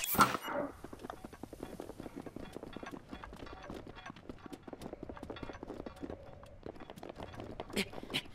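Footsteps patter quickly over grass and rock.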